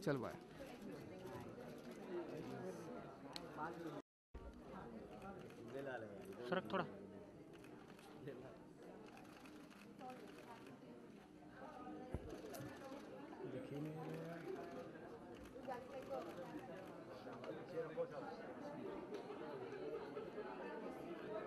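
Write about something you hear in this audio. A chatter of many voices fills the room.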